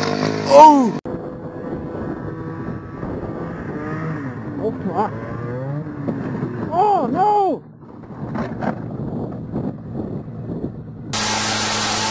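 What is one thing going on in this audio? A snowmobile engine roars in the distance.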